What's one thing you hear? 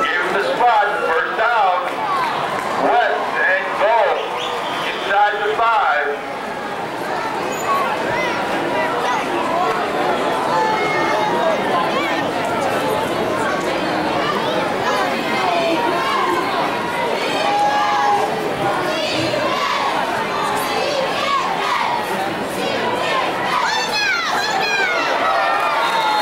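A crowd of people chatters and cheers around the listener.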